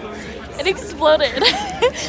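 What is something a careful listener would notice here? A young woman talks cheerfully up close.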